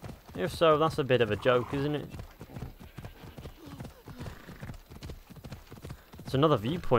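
A horse gallops along a dirt path with steady, rhythmic hoofbeats.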